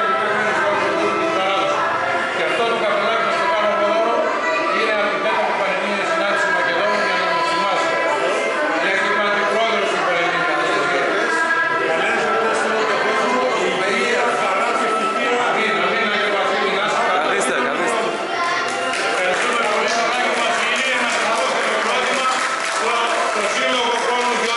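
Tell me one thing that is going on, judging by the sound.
An elderly man talks with animation up close.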